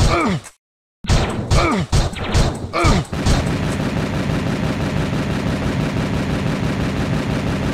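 Explosions boom and rumble repeatedly.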